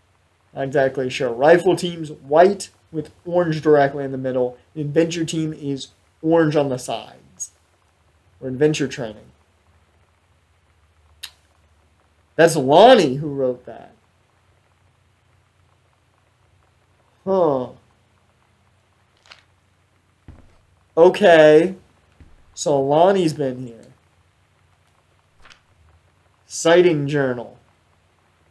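A young man talks animatedly into a close microphone, with pauses.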